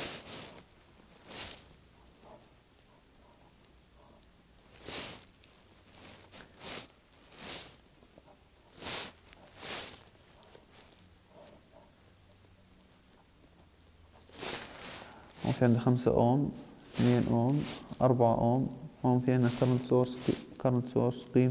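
A felt-tip marker scratches and squeaks across paper.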